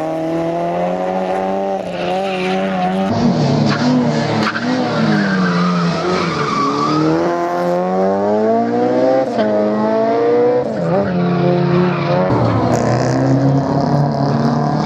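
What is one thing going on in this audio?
A car engine revs hard, its pitch rising and falling.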